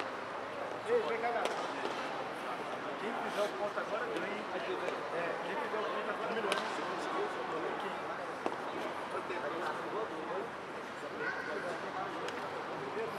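A crowd murmurs and chatters throughout.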